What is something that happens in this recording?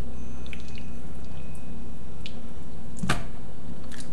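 A hand sets meat down into a plastic bowl with a soft thud.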